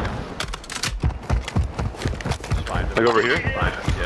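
A rifle clicks as it is reloaded.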